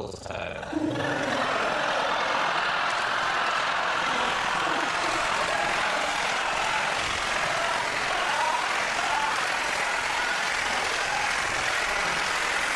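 A studio audience laughs and claps.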